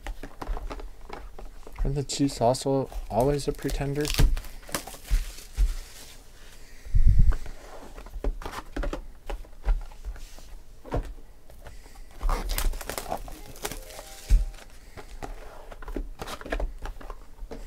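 Card packs tap and knock against each other as hands sort them.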